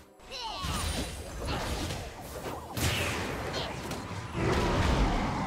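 Magic spells whoosh and burst in a fight between game characters.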